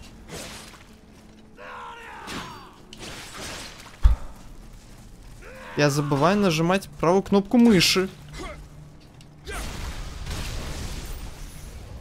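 Blades slash and strike in a fight.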